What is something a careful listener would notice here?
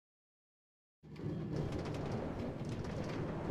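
A minecart rattles along metal rails.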